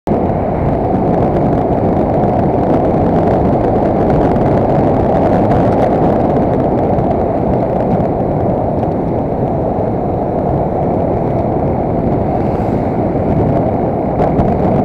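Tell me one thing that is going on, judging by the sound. A vehicle's engine hums steadily while driving.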